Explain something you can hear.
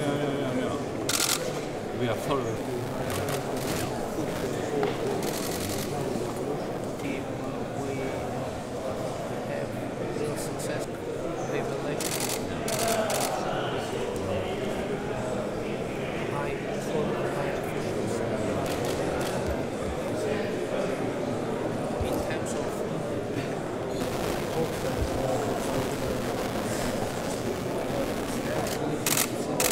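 A man speaks quietly, close by.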